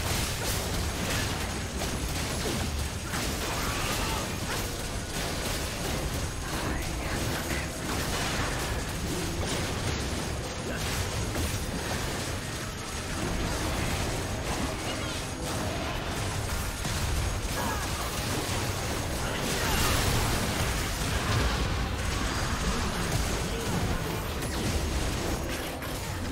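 Magic blasts and clashes of a game battle crackle and boom.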